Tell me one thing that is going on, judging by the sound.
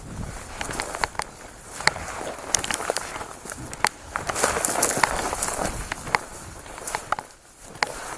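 Dry grass and twigs rustle and snap close by.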